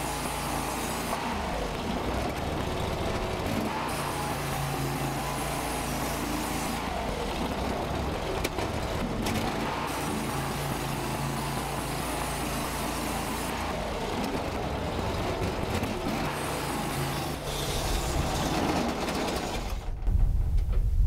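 A gas-engine portable band sawmill runs and cuts through a white oak log.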